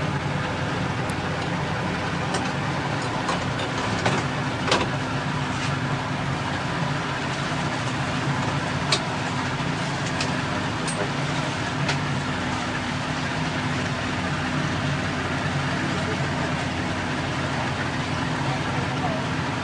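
A boat engine drones steadily, heard from inside the cabin.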